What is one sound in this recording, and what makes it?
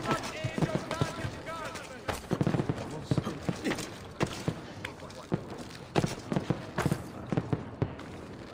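Hands and feet thump and scrape against stone while climbing.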